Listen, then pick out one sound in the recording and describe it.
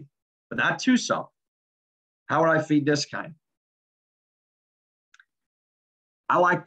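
A young man speaks calmly into a close microphone, heard as through an online call.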